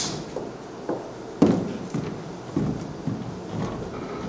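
Footsteps thud on a hollow wooden floor.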